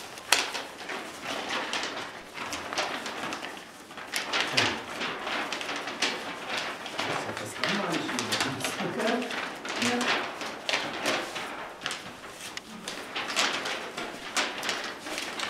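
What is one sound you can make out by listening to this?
Paper sheets rustle and flap as several people sort them quickly.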